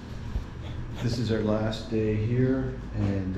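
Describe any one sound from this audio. A middle-aged man speaks calmly up close.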